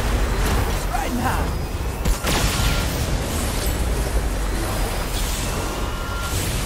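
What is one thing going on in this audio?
Energy beams blast and crackle with a loud roar.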